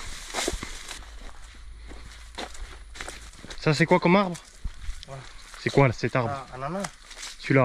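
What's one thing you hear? Footsteps crunch on a dry dirt path strewn with leaves.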